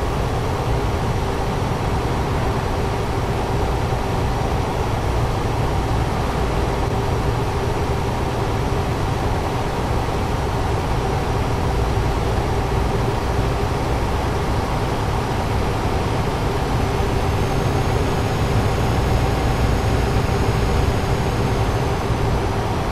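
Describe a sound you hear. Tyres roll on a road with a steady hum.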